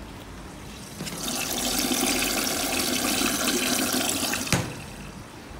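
Water sprays and splashes into a washing machine drum.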